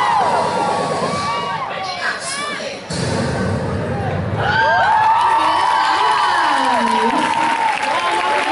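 A young woman speaks with animation through a loudspeaker in a large echoing hall.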